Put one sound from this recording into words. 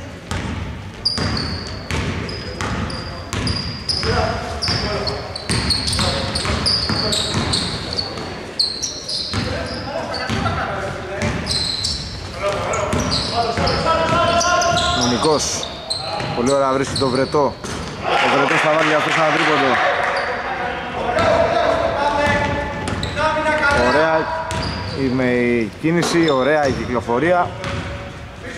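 A basketball bounces on a hardwood court in an echoing indoor arena.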